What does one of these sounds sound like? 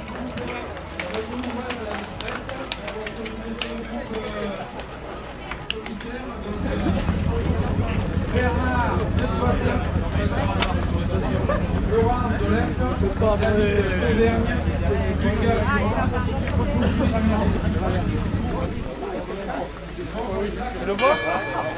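A crowd of men chatter loudly all around.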